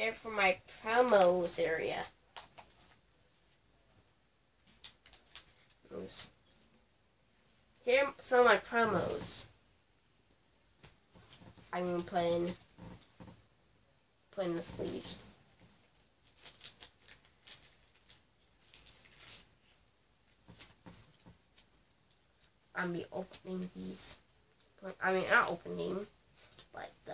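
Trading cards click and rustle as a boy handles them.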